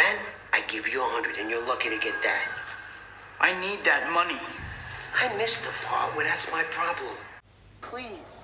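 A middle-aged man talks tensely, close by.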